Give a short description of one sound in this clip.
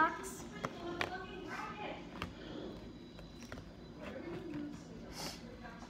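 A cardboard box rustles and taps as hands open it.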